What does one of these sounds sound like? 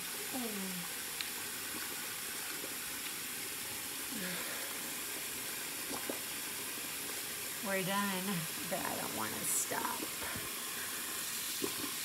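Hands rub together under running water.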